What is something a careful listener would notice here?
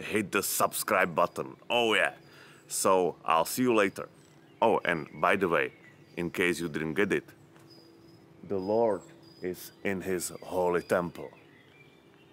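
A young man talks calmly, close to a microphone.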